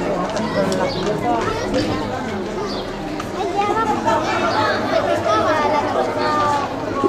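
A crowd of men and women shout and cheer with excitement outdoors.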